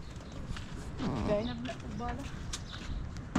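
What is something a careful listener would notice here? A woman talks nearby.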